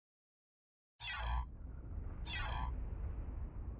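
Interface chimes sound twice in quick succession.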